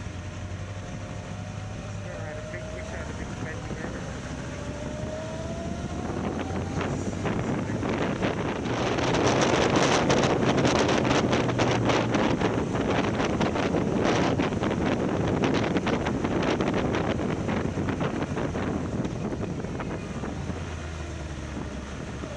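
A motorcycle engine hums steadily and grows louder as it speeds up.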